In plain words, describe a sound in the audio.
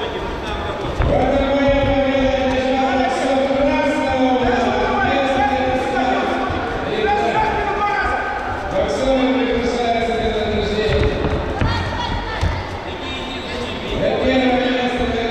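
Spectators shout loudly from ringside.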